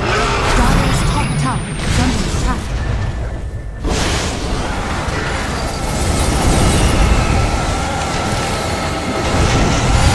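Magic blasts and clashing blows ring out in a busy fight.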